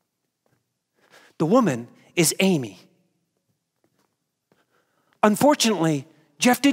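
A young man speaks with animation through a microphone in a large hall.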